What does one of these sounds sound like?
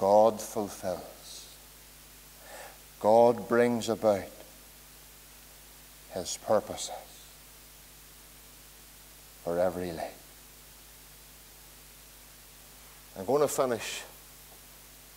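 A middle-aged man speaks slowly and earnestly through a microphone in an echoing hall, with long pauses.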